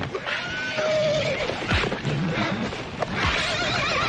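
Horses' hooves pound on dry dirt.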